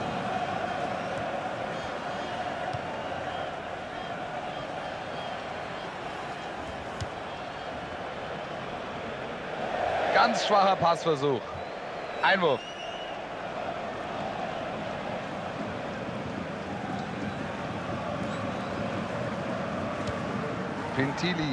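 A large crowd murmurs and roars steadily in an open stadium.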